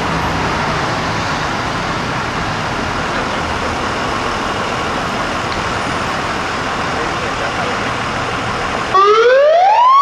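A fire truck's engine idles with a steady rumble.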